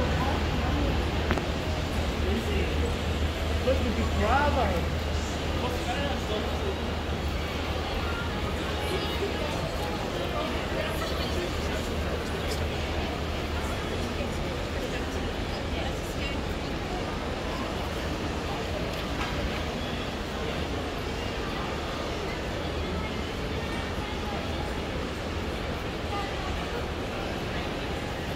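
Footsteps of a crowd walking on paving fill an open outdoor space.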